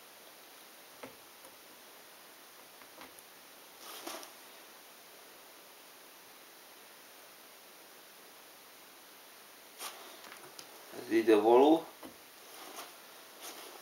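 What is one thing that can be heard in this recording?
Jigsaw puzzle pieces click and shuffle softly on a table.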